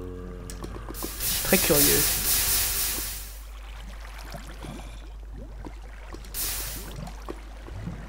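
Water gushes out and hisses loudly in short bursts.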